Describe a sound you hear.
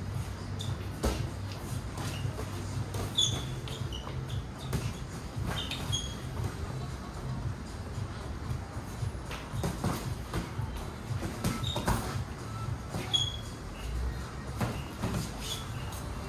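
Boxing gloves thump against each other in quick blows.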